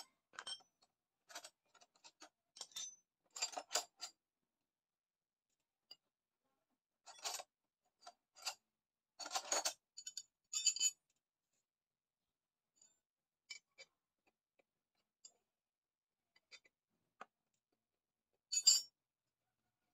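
Small metal parts click and scrape under working hands.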